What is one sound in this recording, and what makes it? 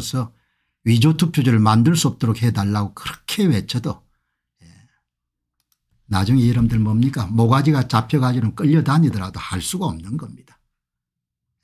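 An elderly man speaks calmly and close to a microphone.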